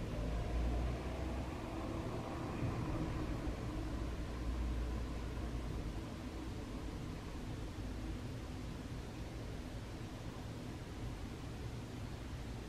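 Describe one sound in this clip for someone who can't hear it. Wind rustles through the trees outdoors.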